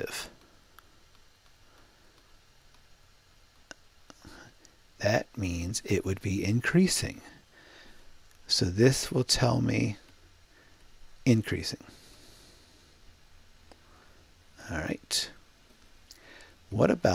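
A man speaks calmly into a close microphone, explaining in bursts with pauses.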